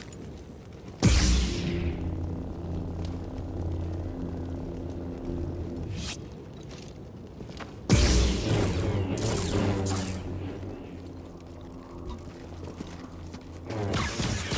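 A lightsaber ignites with a sharp hiss and hums steadily.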